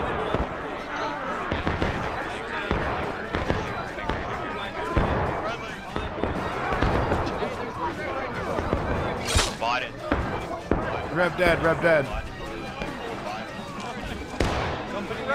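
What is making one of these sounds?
Muskets fire in sharp bangs nearby and in the distance.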